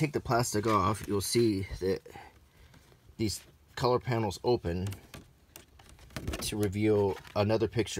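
A large folded paper sheet rustles as it is opened out.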